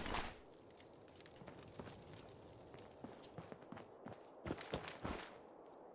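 Footsteps tread lightly over rubble.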